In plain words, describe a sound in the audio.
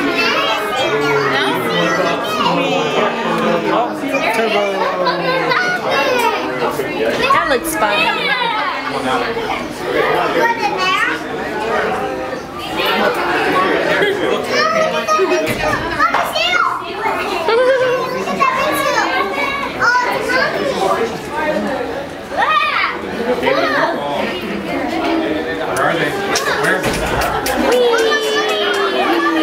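Children and adults chatter and call out nearby in a busy, echoing hall.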